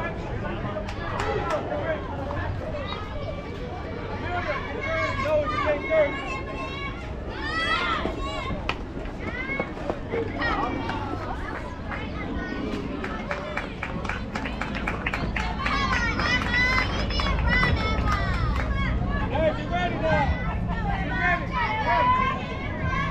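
Young girls shout and cheer from nearby.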